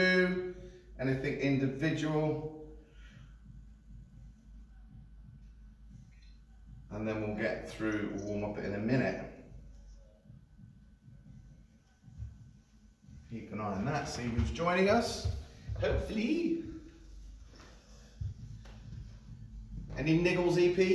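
A man speaks clearly and steadily to a listener nearby.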